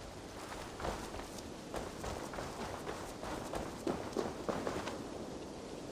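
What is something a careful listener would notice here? Footsteps crunch on rough ground at a brisk pace.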